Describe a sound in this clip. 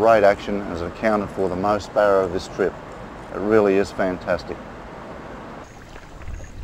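Water rushes over rocks nearby.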